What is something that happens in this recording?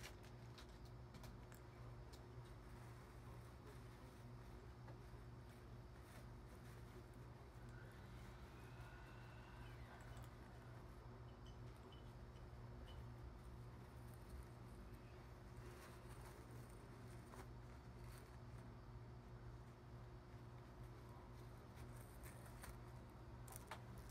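A feather boa rustles softly as it is handled.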